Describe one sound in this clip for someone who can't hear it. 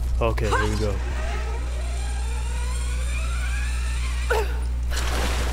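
A zip line whirs as someone slides down a rope.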